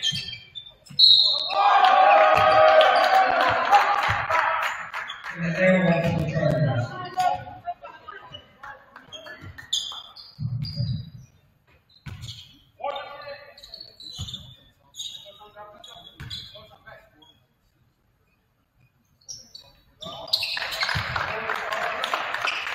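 A crowd cheers and shouts loudly in an echoing gym.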